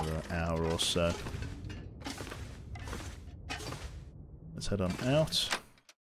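Footsteps creak across wooden floorboards.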